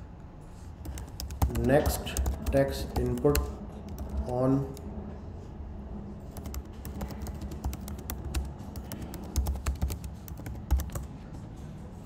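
Keys click rapidly on a keyboard.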